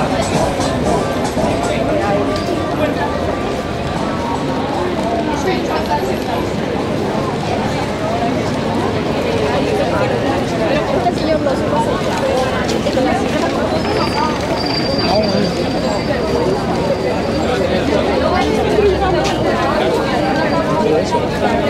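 A crowd of people chatter on a busy street outdoors.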